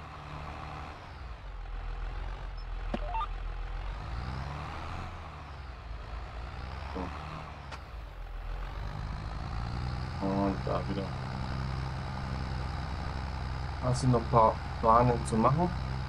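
A tractor engine hums steadily and rises and falls in pitch.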